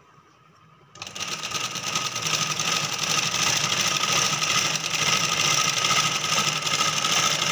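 A sewing machine whirs steadily as its needle stitches cloth.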